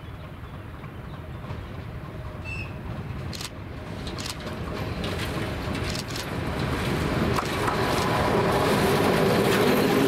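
A diesel locomotive approaches with a growing rumble and roars past close by.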